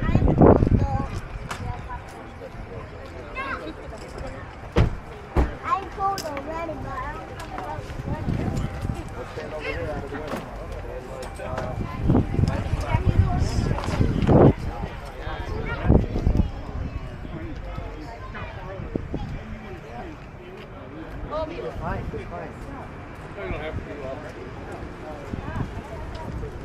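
A crowd of adults and children chatters outdoors nearby.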